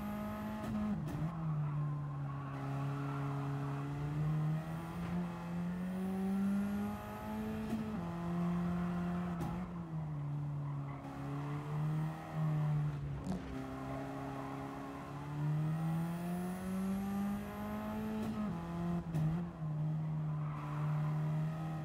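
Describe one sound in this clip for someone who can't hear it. A racing car engine roars steadily, its pitch rising and dropping with the gear changes.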